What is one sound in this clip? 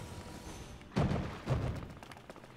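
Water splashes loudly twice.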